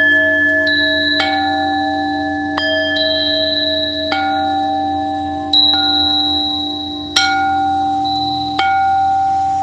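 Metal singing bowls ring out with long, overlapping tones, struck now and then so new notes bloom and slowly fade.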